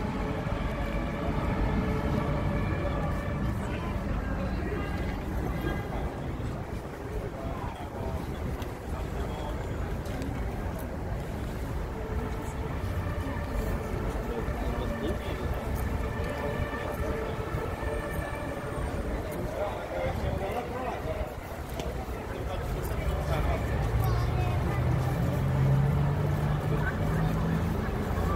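A crowd of people murmurs and talks all around outdoors.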